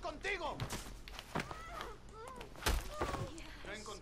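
Blows thud in a scuffle.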